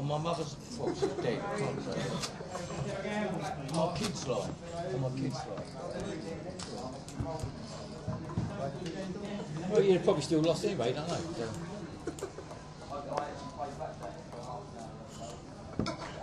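A man talks casually nearby.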